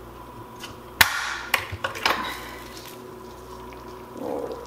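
A glass lid clinks against a metal pot as it is lifted off.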